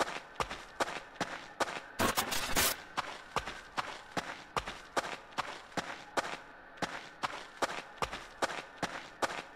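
Footsteps tread steadily on soft ground.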